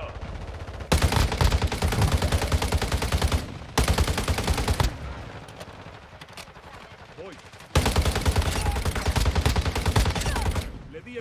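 Rapid automatic rifle fire rattles in a video game.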